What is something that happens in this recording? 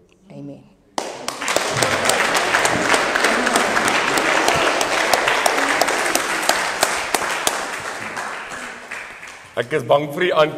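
A group of people applaud steadily.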